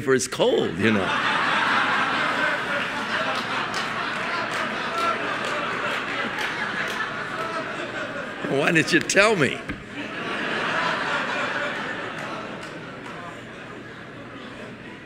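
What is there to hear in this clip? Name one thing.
A large audience laughs loudly in an echoing hall.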